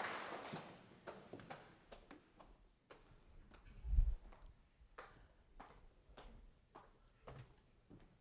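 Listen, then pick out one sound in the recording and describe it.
Footsteps walk slowly across a floor.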